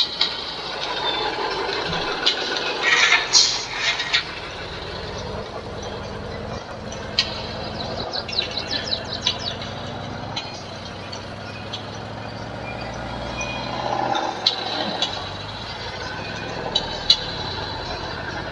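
A pickup truck engine hums steadily as it tows a trailer.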